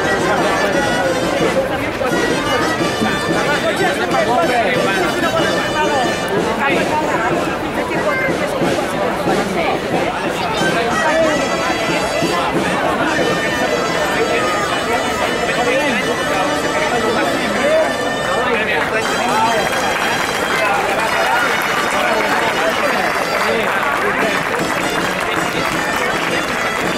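A crowd of people murmurs and talks outdoors.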